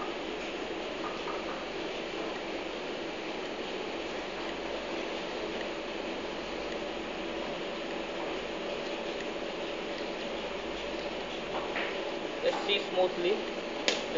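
A peeler scrapes along a carrot.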